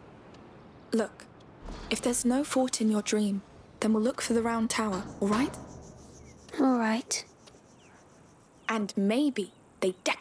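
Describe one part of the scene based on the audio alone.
A young woman speaks gently, close by.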